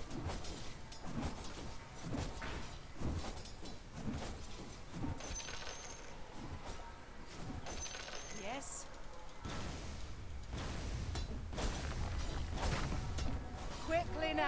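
Spell effects whoosh and crackle in a fantasy battle.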